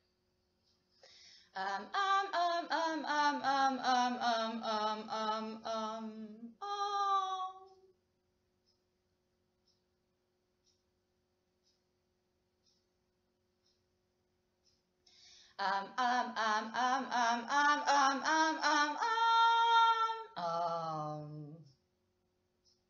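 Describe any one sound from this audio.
A young woman sings long, wavering phrases close by, with pauses in between.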